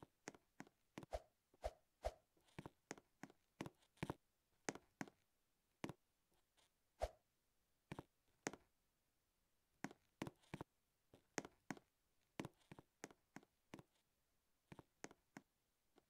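Light footsteps tap quickly on a hard floor.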